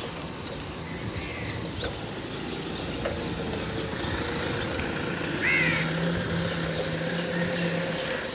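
Bicycle tyres roll over a paved road.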